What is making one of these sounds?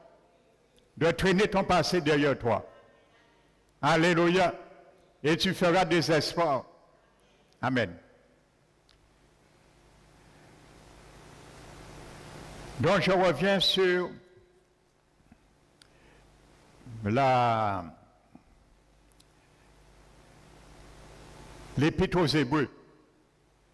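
A middle-aged man speaks slowly and with emphasis through a microphone in a large echoing room.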